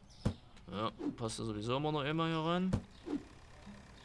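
A cardboard box thuds down onto pavement.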